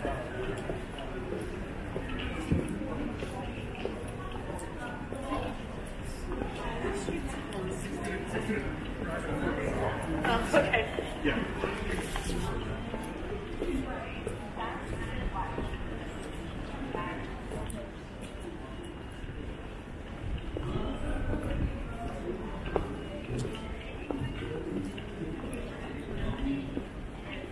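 A crowd of people murmurs in the distance outdoors.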